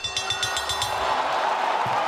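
A young woman yells in triumph.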